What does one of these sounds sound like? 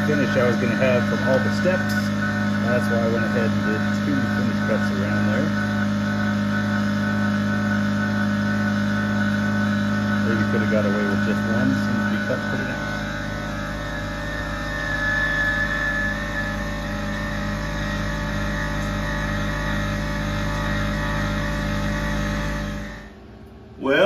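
A milling machine whines steadily as it cuts metal.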